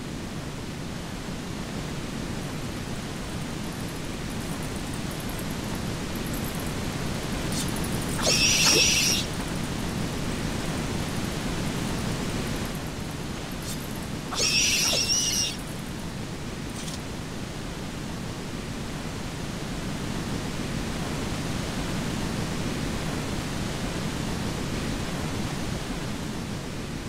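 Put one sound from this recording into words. Water roars as it pours down steadily nearby.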